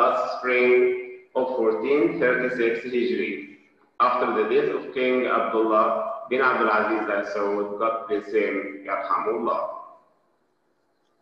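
A man speaks calmly, heard through a microphone.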